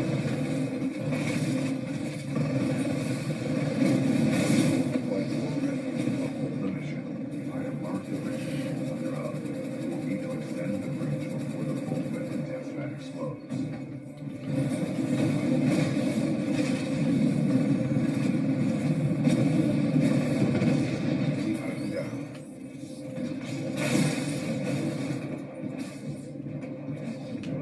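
A deep rumbling roar of a game's robots and engines plays steadily through speakers.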